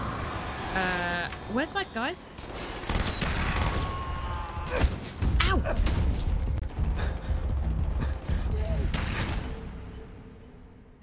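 Gunshots crack and boom loudly in a video game.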